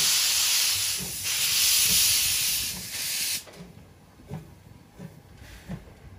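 Train wheels clack rhythmically over rail joints as the train rolls past.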